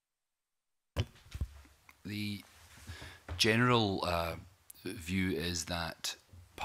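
A middle-aged man answers calmly into a microphone.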